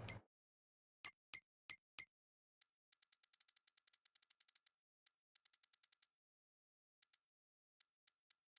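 Short electronic menu clicks tick in quick runs.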